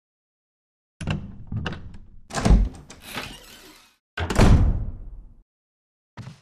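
A heavy wooden door creaks slowly open.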